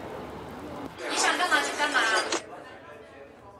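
A young woman answers calmly nearby.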